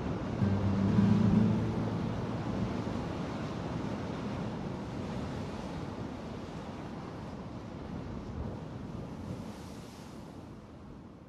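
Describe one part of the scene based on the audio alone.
A car drives steadily along a highway, with road and engine noise rumbling from inside the cabin.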